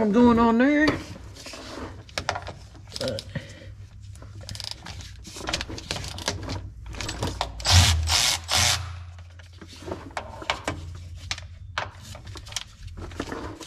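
Metal tools clink and knock against a car's underside.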